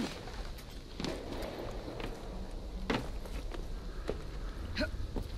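Punches land with heavy thuds during a brawl.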